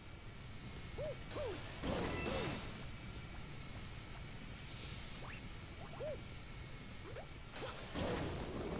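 Short springy game sound effects chirp and bounce.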